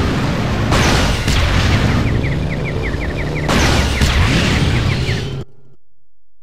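Motorcycle engines roar at speed.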